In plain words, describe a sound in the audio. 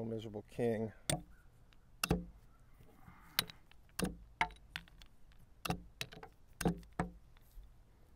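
Chess pieces click sharply on a board.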